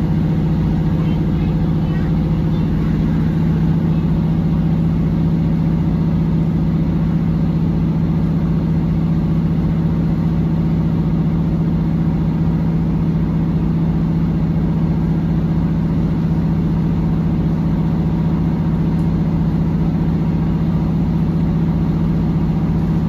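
A train rumbles steadily along the tracks with a low, droning hum.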